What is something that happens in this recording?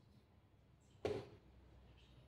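A chess piece is set down on a wooden board with a sharp knock.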